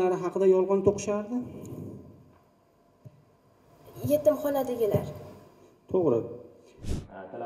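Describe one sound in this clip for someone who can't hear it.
A girl speaks clearly through a microphone in an echoing hall.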